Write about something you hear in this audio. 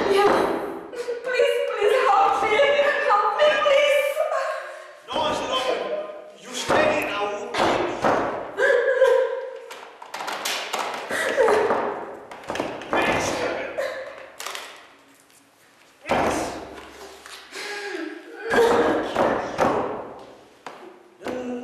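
A young woman sings with emotion, close by.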